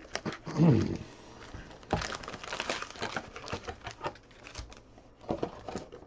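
A cardboard box flap is folded and handled.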